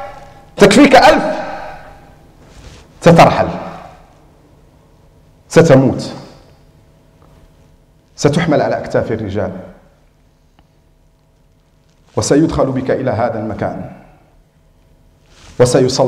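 A man speaks with animation in short bursts through a microphone, with a reverberant echo.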